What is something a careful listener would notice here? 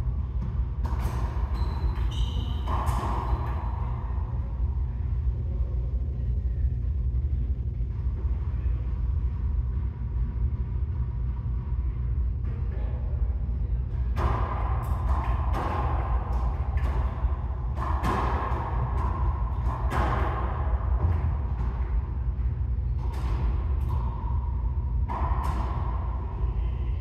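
A racquetball smacks off the walls with sharp echoing bangs in a large echoing court.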